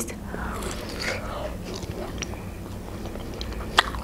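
A young woman chews food with her mouth.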